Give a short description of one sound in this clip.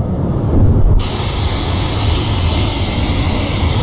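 A jet engine roars with a loud hiss.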